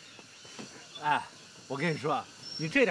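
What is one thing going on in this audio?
A man laughs and talks cheerfully nearby.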